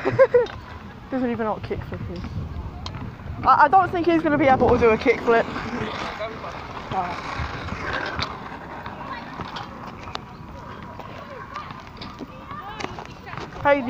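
Scooter wheels roll and rattle on rough tarmac.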